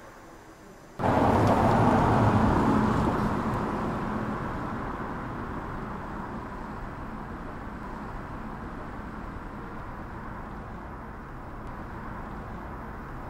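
A car drives slowly through an echoing garage.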